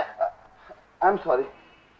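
A man speaks a few quick words.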